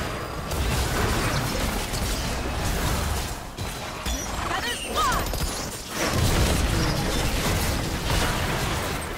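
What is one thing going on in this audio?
Magic spells whoosh and crash in a fast video game battle.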